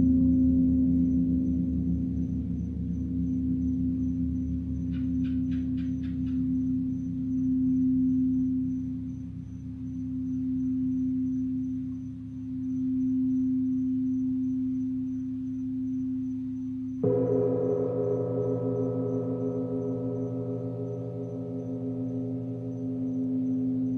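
A large gong hums with a deep, swelling drone as a mallet rubs it.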